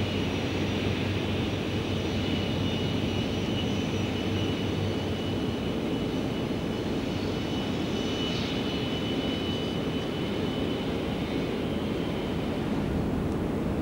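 A train rolls past on the tracks.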